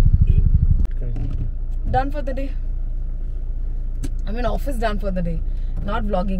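A woman speaks and laughs nearby inside a car.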